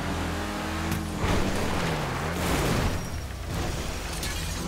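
A car crashes and tumbles over with loud thuds and scraping.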